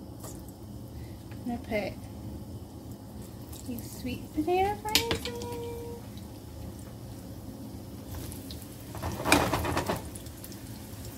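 Pieces of food drop into hot oil and hiss loudly.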